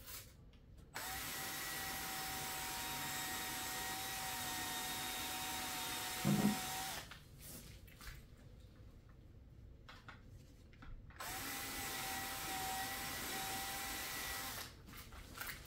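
A power drill with a scrub brush whirs steadily against carpet.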